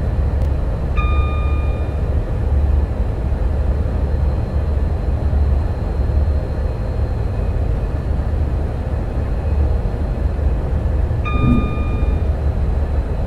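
A cab warning chime beeps briefly, twice.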